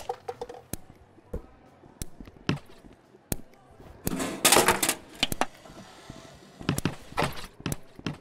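Plastic bottles clatter onto a wooden floor.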